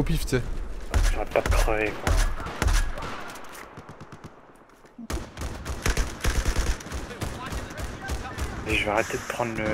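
Rapid gunshots crack and boom close by.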